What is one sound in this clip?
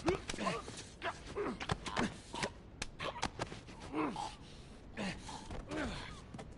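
Bodies scuffle and thud in a close fight.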